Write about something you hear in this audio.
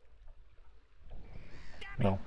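A middle-aged man talks close to a microphone.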